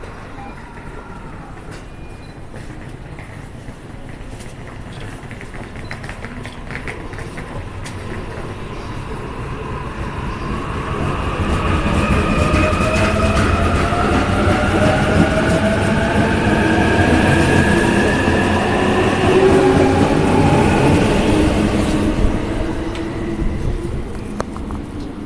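Electric express train wheels rumble along the rails.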